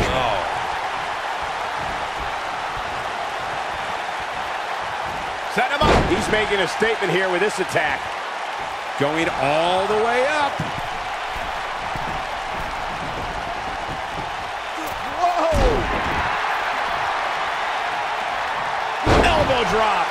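A large crowd cheers and murmurs steadily.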